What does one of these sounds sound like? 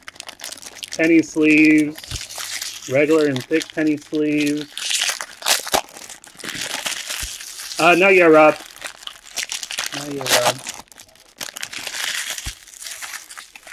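Foil wrappers crinkle and rustle as card packs are torn open.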